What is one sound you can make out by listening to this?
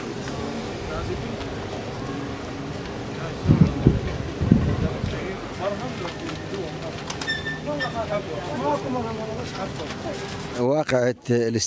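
People murmur in the background.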